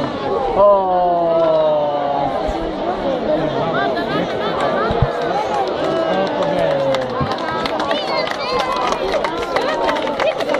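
Fireworks bang and crackle over the water.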